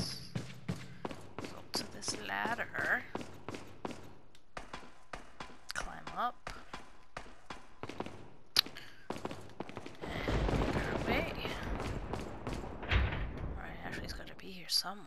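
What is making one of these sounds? Footsteps tap steadily on a hard stone floor.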